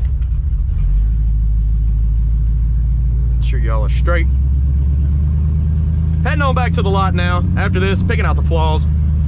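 A car engine pulls away with a louder, deeper rumble.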